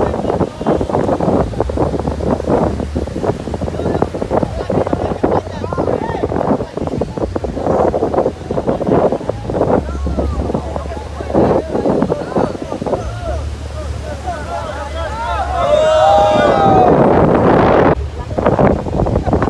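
A group of young men talk and shout over one another outdoors.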